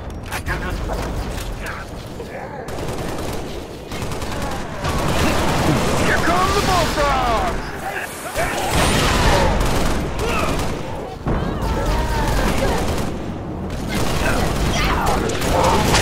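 A rifle fires in short bursts of shots.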